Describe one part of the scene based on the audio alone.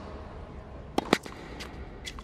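A tennis racket strikes a ball with a sharp pop.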